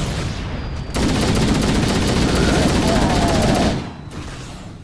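An assault rifle fires in bursts in a video game.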